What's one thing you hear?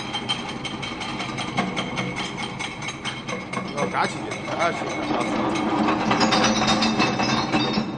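Broken glass clatters and rattles out of a crusher.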